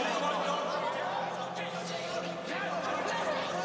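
A woman shouts up close.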